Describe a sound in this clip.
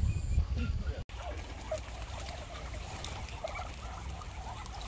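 Water splashes as a duck flaps its wings in a pool.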